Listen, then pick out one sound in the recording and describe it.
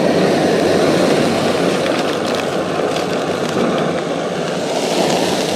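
A plastic bag crinkles as fingers rub it.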